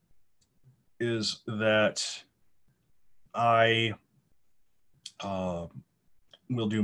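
A young man speaks calmly in short phrases through an online call.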